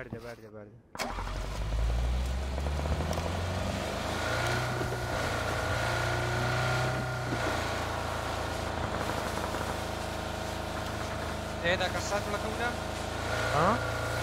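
A car engine starts and rumbles steadily as the car drives.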